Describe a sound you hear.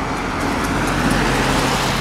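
A car passes close by going the other way.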